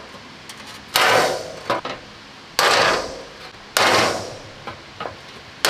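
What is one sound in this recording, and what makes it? A hammer strikes a chisel, cutting through sheet metal with sharp clangs.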